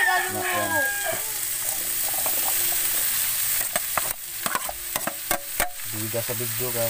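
Sliced vegetables tumble into a hot metal pan.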